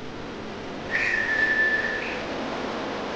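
A train door chime beeps steadily.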